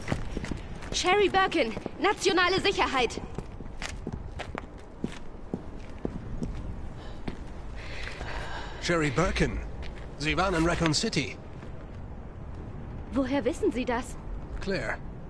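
A young woman speaks urgently, close by.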